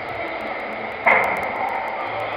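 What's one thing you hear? A football is kicked with a sharp thud that echoes through a large hall.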